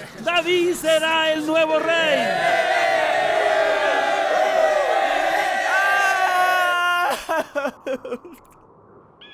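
A man speaks with animation in a high, comical voice.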